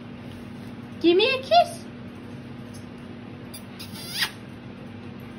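A parrot squawks and chatters up close.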